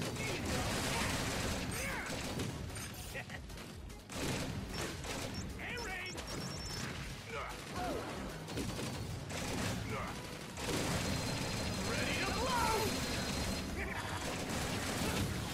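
Game blasters fire in quick bursts.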